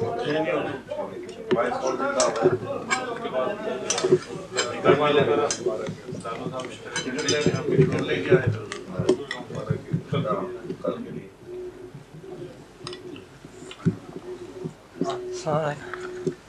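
Several men talk at once nearby, close to the microphone.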